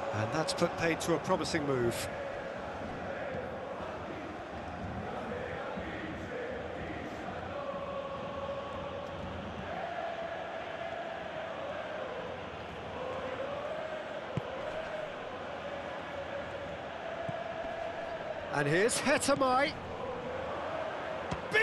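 A large stadium crowd chants and roars steadily.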